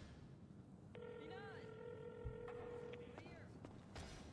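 A phone rings through a handset.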